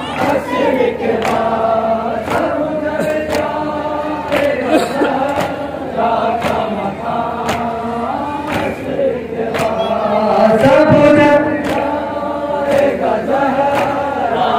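Men chant a mournful lament together, loud and close.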